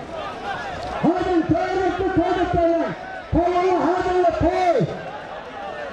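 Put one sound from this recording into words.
A man nearby shouts loudly in long calls.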